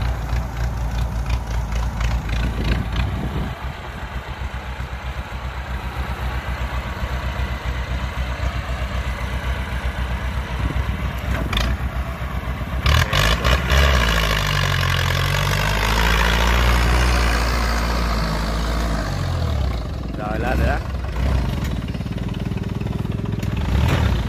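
A diesel tractor engine chugs loudly nearby and revs as it strains.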